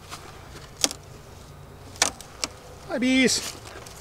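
A wooden hive box knocks as it is lifted and set down.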